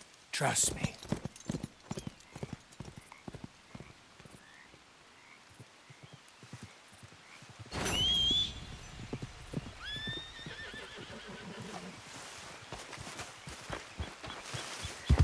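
Footsteps crunch on a forest path.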